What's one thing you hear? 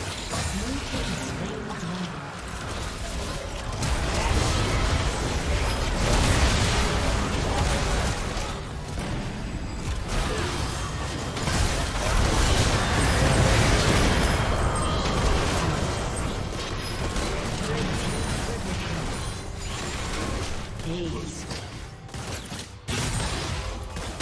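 Spell effects crackle and burst in a video game battle.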